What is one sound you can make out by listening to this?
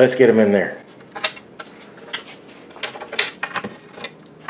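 Small metal bolts clink together in a hand.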